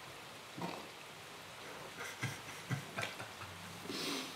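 A young man laughs softly in short bursts nearby.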